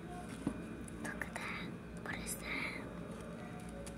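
A young girl speaks softly close to the microphone.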